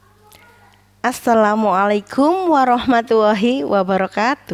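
A woman speaks warmly into a microphone, heard close.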